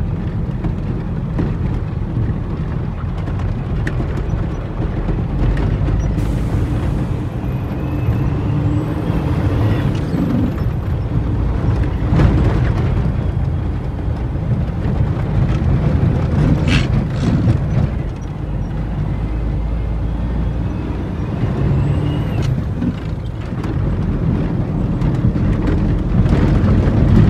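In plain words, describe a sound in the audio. Tyres crunch and bump over a rough dirt road.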